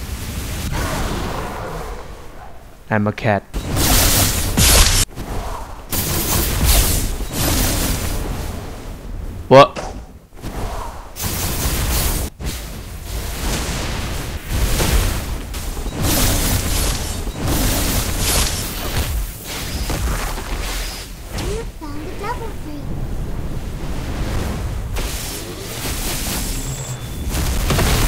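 Electric crackling and zapping bursts sound again and again.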